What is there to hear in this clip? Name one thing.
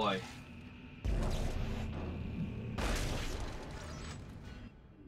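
A gun fires with loud bursts.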